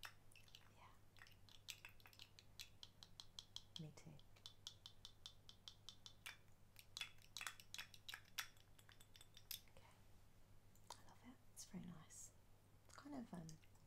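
A glass perfume bottle clinks and rattles in a woman's hands.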